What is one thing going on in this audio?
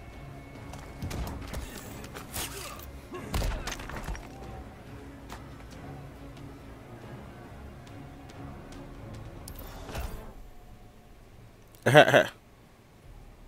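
Heavy punches and throws land with loud thuds and whooshes.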